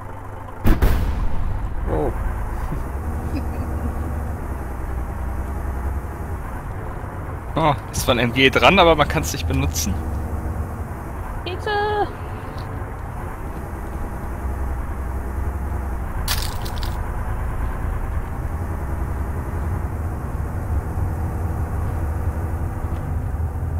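A truck engine rumbles steadily while driving along a road.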